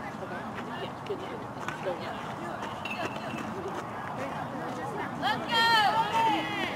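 A crowd of people chatters outdoors at a distance.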